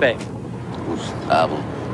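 An elderly man speaks in a drowsy voice.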